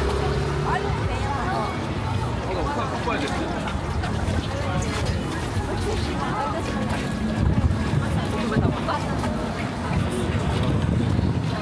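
Light rain patters on umbrellas.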